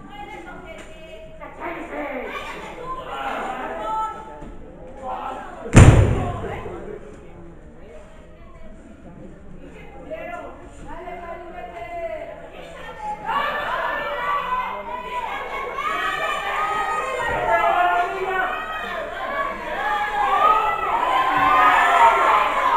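A crowd shouts and cheers in an echoing hall, growing louder.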